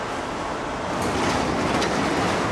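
A tool clanks against metal.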